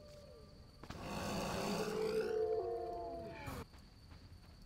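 A giant creature screeches loudly and the cry slides downward.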